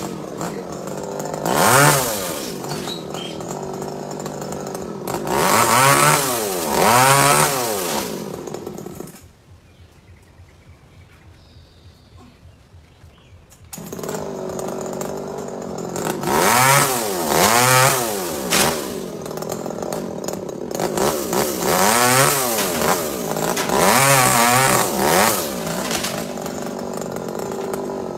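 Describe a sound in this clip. A chainsaw revs up and down close by.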